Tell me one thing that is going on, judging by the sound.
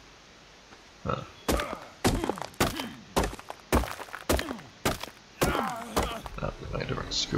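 A stone pick strikes rock with sharp knocks.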